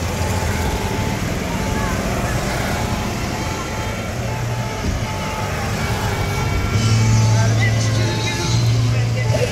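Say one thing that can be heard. Electric golf carts hum past one after another on a paved road.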